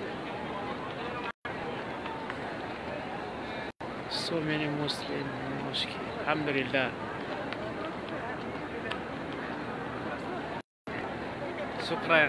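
A crowd murmurs in a large open space.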